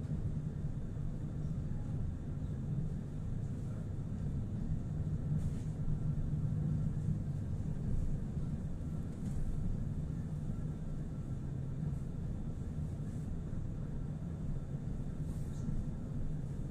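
Traffic rumbles past outside.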